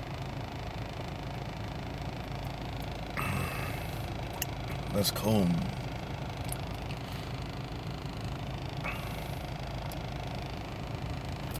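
A man gulps down a drink close by.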